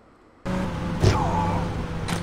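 A car thuds into a person.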